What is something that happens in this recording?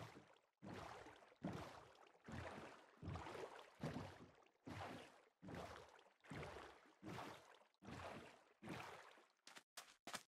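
Oars splash through water in a steady rowing rhythm.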